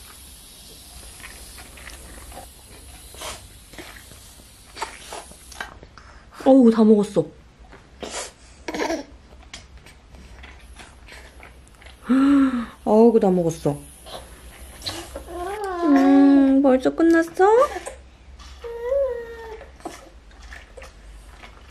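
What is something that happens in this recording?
A toddler sips juice from a sippy cup.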